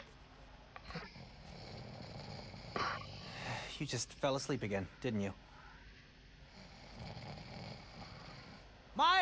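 A young man snores softly.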